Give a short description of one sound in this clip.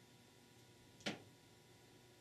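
A small metal part clicks into place on a metal plate.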